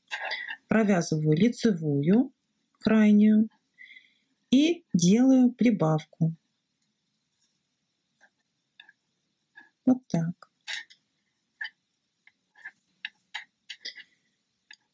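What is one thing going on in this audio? Knitting needles click and tap softly.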